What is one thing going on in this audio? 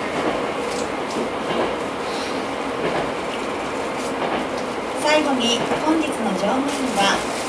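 A young woman speaks calmly over a loudspeaker.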